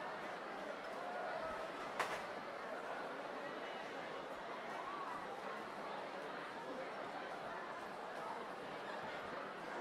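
A crowd of men and women chatter in a large hall.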